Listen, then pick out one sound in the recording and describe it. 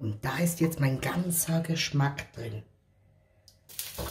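Liquid pours and splashes into a pot.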